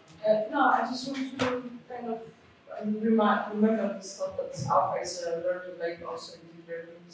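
A man lectures calmly in a room with a slight echo.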